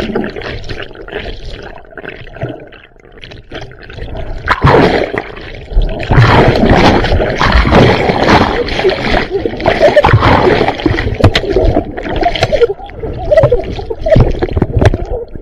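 Water churns and bubbles, heard muffled from underwater.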